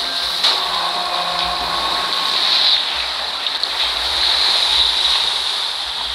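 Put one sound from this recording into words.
A ship's funnel collapses with a heavy crash.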